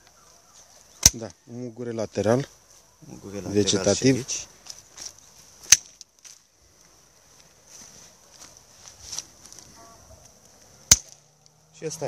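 Pruning shears snip through a thin branch with a sharp click.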